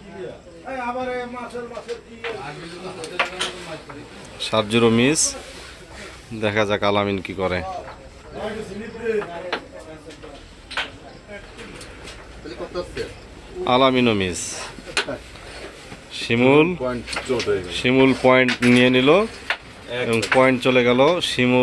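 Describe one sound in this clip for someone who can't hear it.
Several men talk with animation close by.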